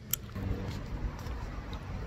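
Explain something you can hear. A person gulps a drink from a can.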